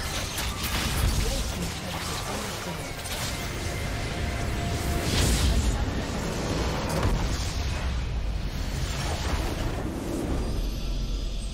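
Game spells and attacks crackle and explode in a loud battle.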